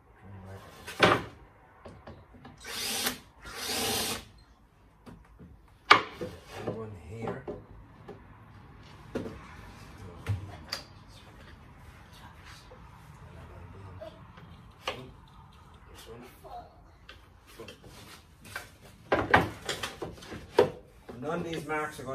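Pieces of wood knock and clatter on a workbench.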